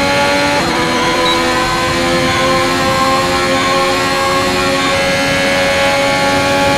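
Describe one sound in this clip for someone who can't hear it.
A racing car engine screams at high revs, shifting pitch as gears change.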